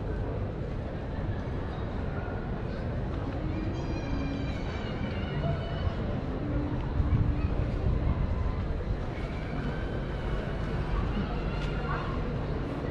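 Adults chat quietly at a distance outdoors in light wind.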